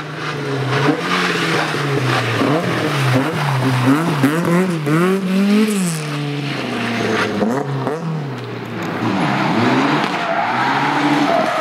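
Tyres scrabble and skid on loose gravel.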